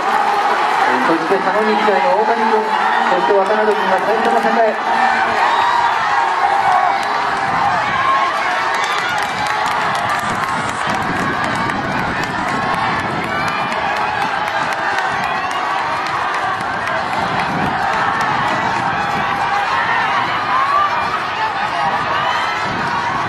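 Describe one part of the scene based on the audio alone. A large outdoor crowd cheers and chatters throughout.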